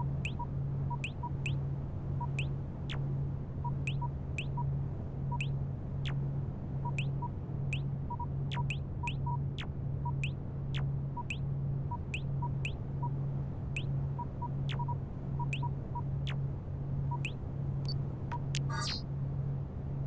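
Short interface blips and clicks sound as menus pop open.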